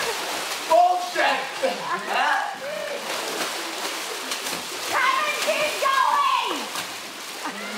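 Young men shout and laugh excitedly close by.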